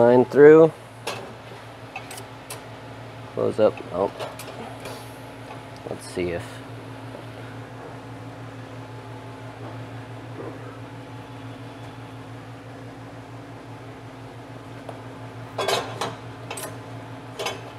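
Metal parts click as a man handles a clamp.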